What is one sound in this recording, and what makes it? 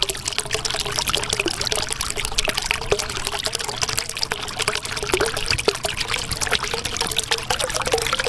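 Air bubbles rise and pop in water with a steady bubbling.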